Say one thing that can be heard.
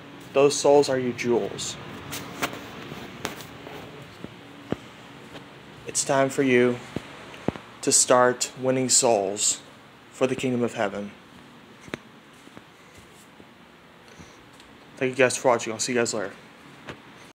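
A young man speaks close to the microphone in short bursts.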